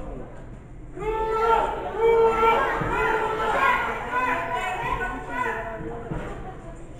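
A crowd cheers and shouts with excitement.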